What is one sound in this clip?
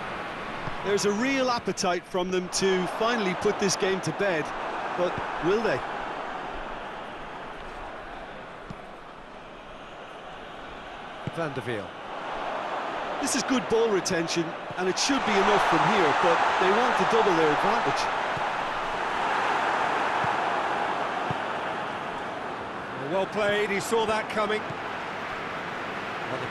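A large stadium crowd roars steadily, swelling louder for a few seconds.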